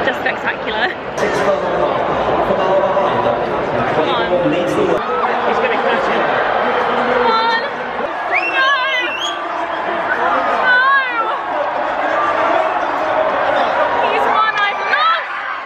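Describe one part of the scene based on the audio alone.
A crowd chatters and cheers in the background.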